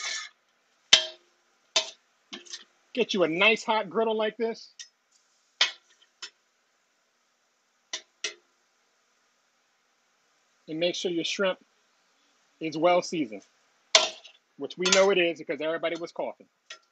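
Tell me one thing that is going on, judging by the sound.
A metal spatula scrapes and clanks on a griddle.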